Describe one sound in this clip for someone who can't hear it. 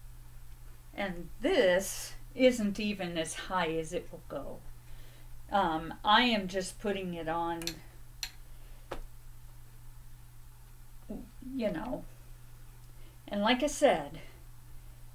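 A middle-aged woman talks calmly, close to the microphone.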